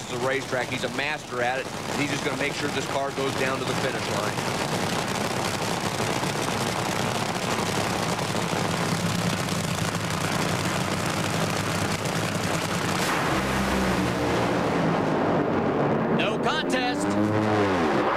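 Drag racing engines roar loudly and thunder off the line.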